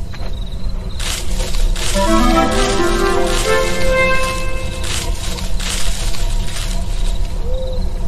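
A bright chiming jingle rings out as an item is picked up.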